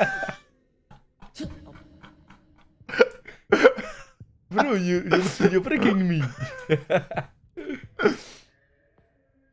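A young man talks and laughs with animation into a microphone close by.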